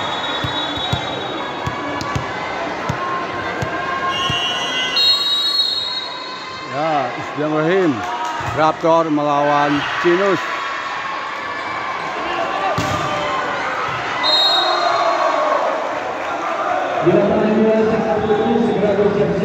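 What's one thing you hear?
A crowd chatters and cheers in a large echoing hall.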